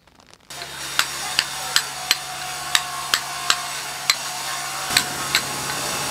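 A mallet strikes a chisel on stone in sharp, regular blows.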